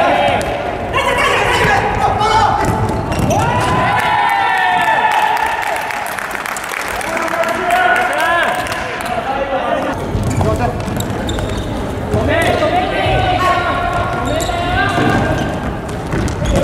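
Young men shout to each other from across the hall.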